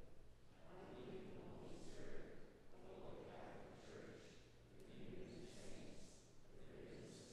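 A congregation of men and women sings together in a large echoing hall.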